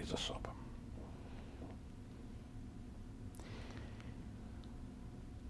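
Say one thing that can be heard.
An elderly man speaks calmly into a nearby microphone.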